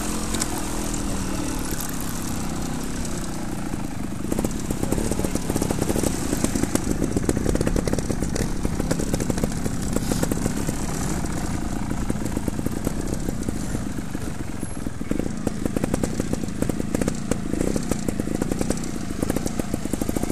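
A dirt bike engine idles and revs close by.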